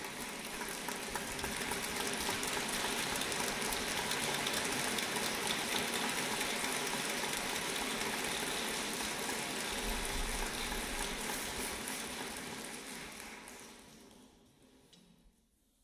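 An audience applauds loudly in a large hall, and the applause slowly fades away.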